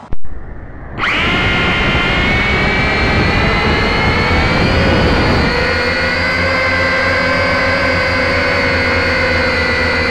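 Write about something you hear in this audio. A small electric fan whirs loudly and steadily close by.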